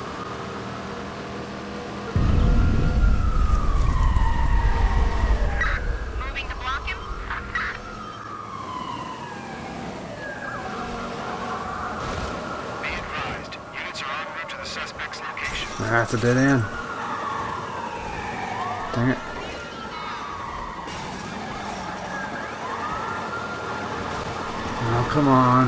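A police siren wails and rises and falls.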